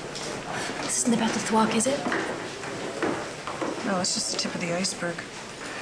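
A middle-aged woman talks urgently, close by.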